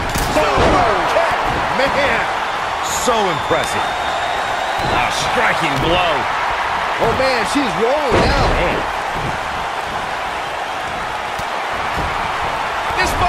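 Bodies slam and thud onto a wrestling ring mat.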